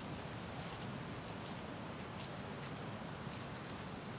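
A folding camp chair creaks as a man sits down in it.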